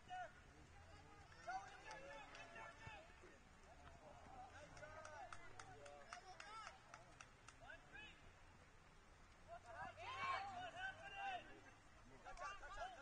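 Young women shout and call out across an open field in the distance.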